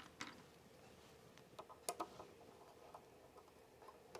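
A small screwdriver taps and clicks against metal parts.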